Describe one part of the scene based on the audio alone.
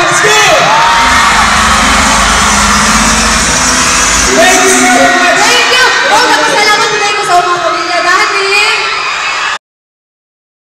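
A crowd cheers and screams.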